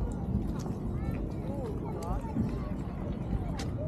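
A stroller's wheels roll over paving stones.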